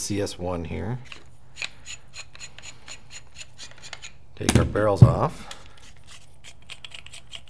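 Plastic parts click and rattle as they are handled.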